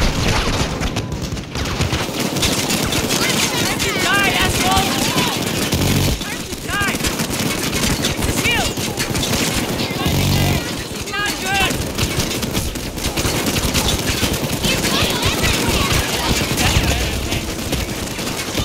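Rapid gunfire rattles and crackles.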